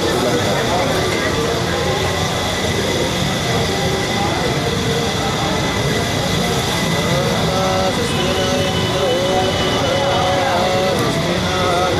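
A crowd of men murmurs and talks close by.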